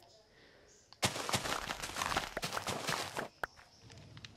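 Wheat stalks break with quick rustling crunches.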